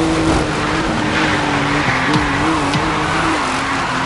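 Tyres screech as a car drifts through a bend.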